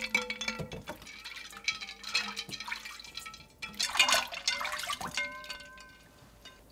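Water sloshes in a bowl of icy water.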